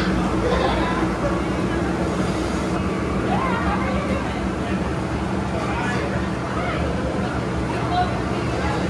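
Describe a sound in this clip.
Air hums steadily through tubes.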